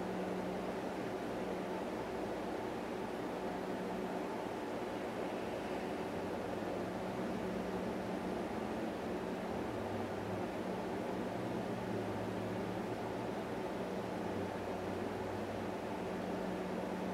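A man hums a low, steady note.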